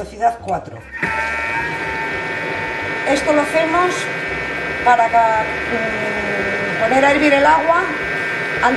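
A kitchen appliance motor hums steadily.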